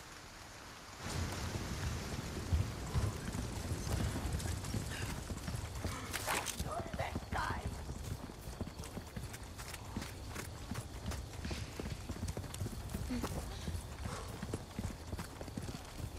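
Footsteps run quickly over stone and gravel.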